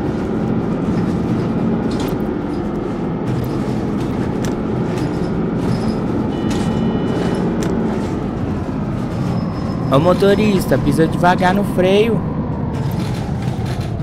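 A bus engine hums steadily as the bus drives along, slowing toward the end.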